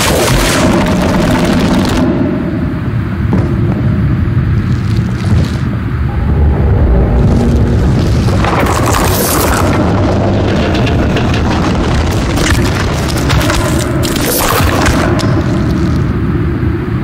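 A large creature growls with a deep, rumbling voice.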